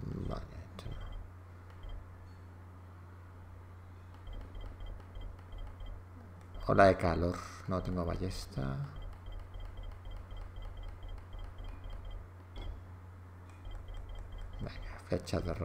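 Soft electronic ticks repeat quickly as a menu is scrolled.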